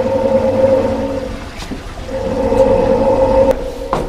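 Laundry tumbles inside a washing machine drum.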